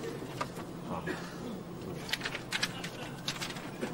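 Paper crinkles and rustles in a man's hands.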